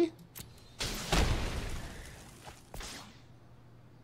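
A fiery blast bursts and fades.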